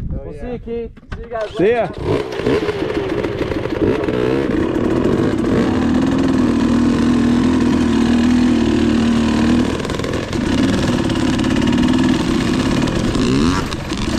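Dirt bike engines run and rev loudly nearby.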